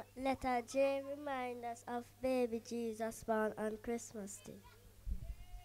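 A young girl sings into a microphone over loudspeakers outdoors.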